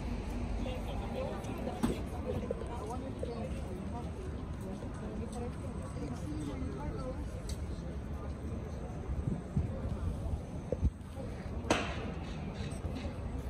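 Several people chatter in the distance.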